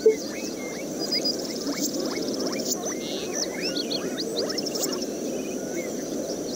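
Short soft computer game blips sound repeatedly.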